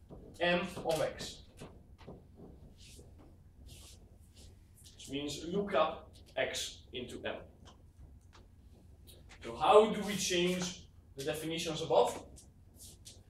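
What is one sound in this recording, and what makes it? A young man lectures nearby, speaking in short bursts with pauses.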